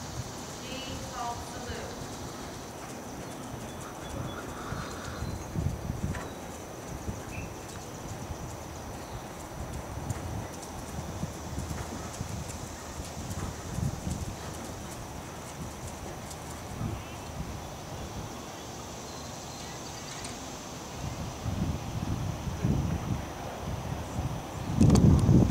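A horse's hooves thud softly on sand as it trots.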